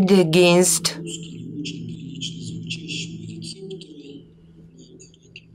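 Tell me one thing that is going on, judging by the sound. An elderly man speaks steadily through a microphone.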